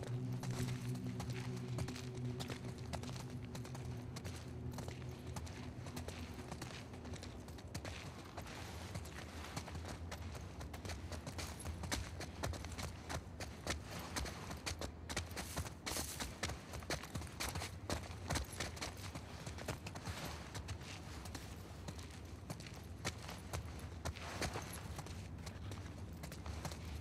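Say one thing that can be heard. Footsteps walk steadily across a hard floor and down stairs.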